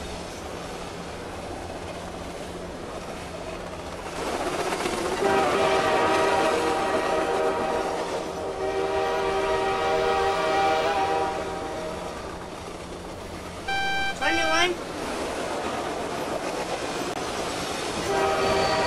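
Train wheels rumble along the rails.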